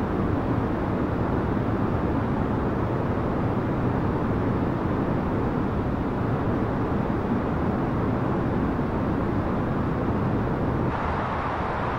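A jet engine roars steadily, muffled as if heard from inside an airliner cabin.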